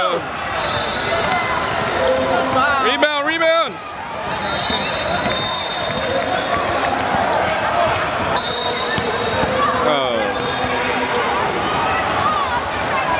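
Spectators shout and cheer in a gym.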